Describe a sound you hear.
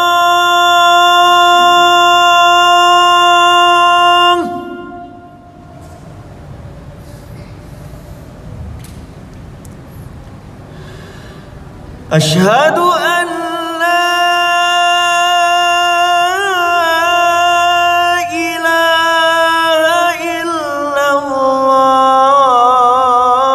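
A man chants a long, drawn-out call loudly through a microphone and loudspeakers, pausing for breath midway.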